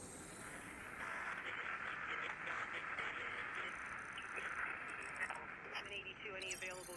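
An electronic signal hums and crackles with static, wavering in pitch.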